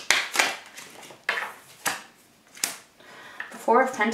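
A card is laid on a table with a light tap.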